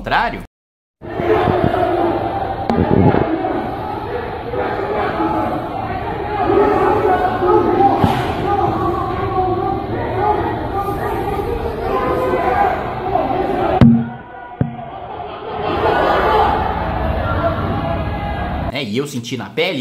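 A crowd of men shouts and yells outdoors during a street fight.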